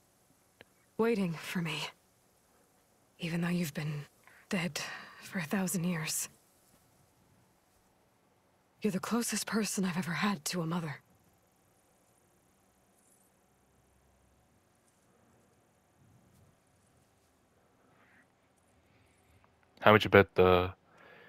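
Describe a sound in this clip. A young woman speaks gently, close by.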